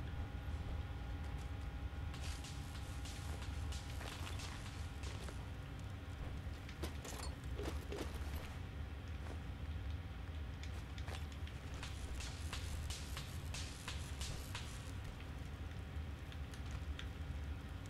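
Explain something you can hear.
Heavy armoured footsteps thud on rocky ground.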